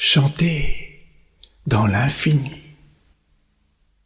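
An elderly man declaims dramatically into a close microphone.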